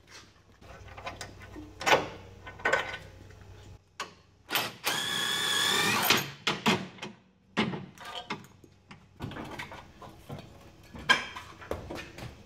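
Metal tools clank and knock against metal parts.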